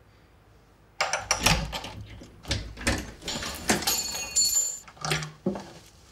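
A door handle clicks and a door swings open.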